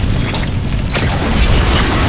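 A motorcycle engine revs.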